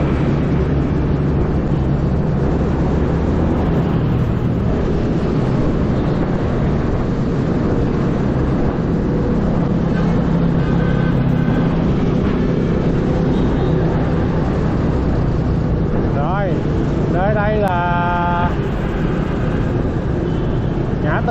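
A scooter engine hums steadily up close.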